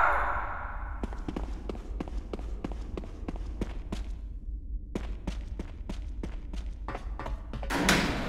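Footsteps tread on a hard floor at a steady pace.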